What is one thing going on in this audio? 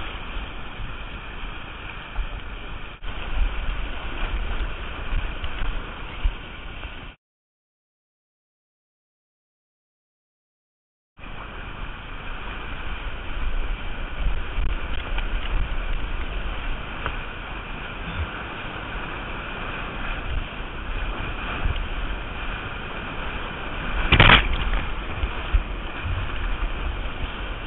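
White water roars and churns loudly close by.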